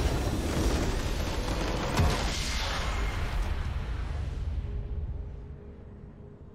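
A deep booming explosion rumbles and slowly fades.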